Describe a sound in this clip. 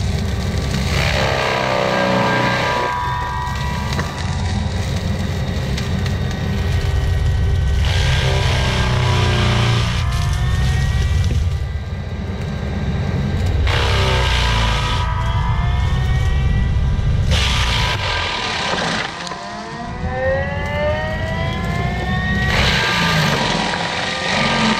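A mulcher's spinning drum grinds and chews through a wooden stump in loud bursts.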